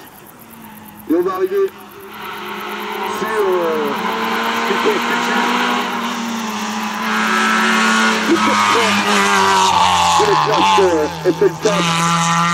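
A second racing car engine revs hard and roars past, rising and falling in pitch.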